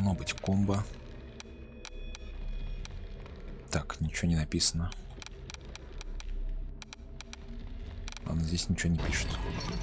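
Mouse clicks tap through a menu.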